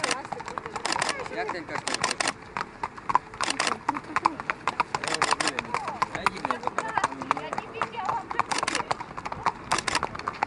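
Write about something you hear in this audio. Horses' hooves clop on a hard path at a slow walk.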